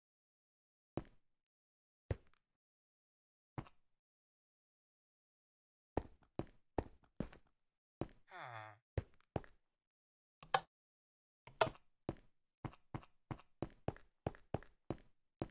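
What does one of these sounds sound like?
Footsteps tap on hard blocks in a game.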